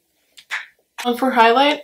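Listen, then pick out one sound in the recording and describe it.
A young woman speaks calmly close to the microphone.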